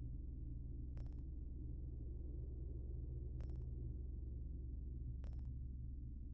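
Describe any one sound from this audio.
Soft clicks sound one after another.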